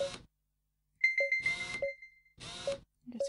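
A cash register chimes as money is collected.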